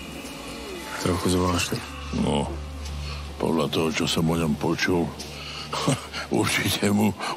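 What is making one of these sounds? An elderly man speaks in a low, close voice.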